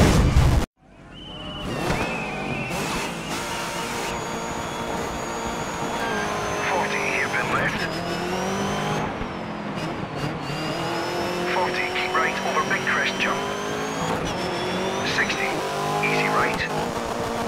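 A rally car engine revs and roars, shifting up through the gears.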